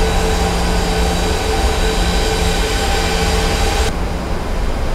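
A jet airliner's engines roar loudly as it flies past.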